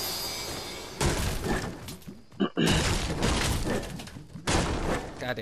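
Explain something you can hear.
A pickaxe strikes wood with repeated hollow thuds and cracks.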